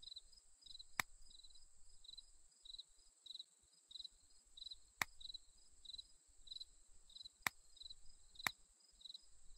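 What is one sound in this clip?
Short sharp clicks sound now and then.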